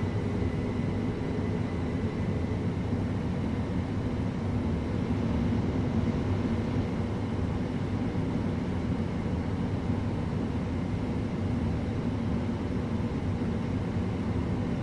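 A train rumbles steadily along the track, heard from inside the carriage.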